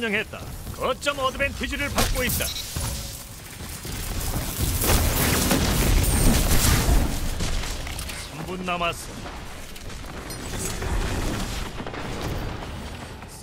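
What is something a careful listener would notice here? Gunfire and energy blasts crack and boom in quick bursts.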